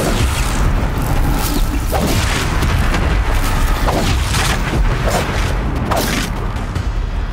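Metal clangs and sparks crackle.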